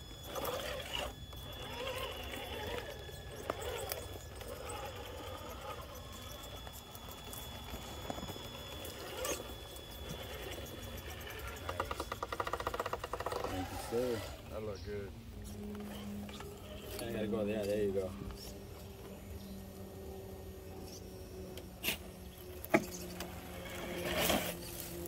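A small electric motor whines as a toy truck crawls over rock.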